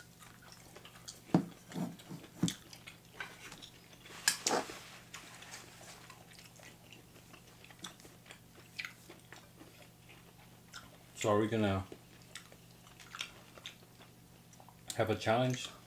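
A young woman slurps noodles and chews up close.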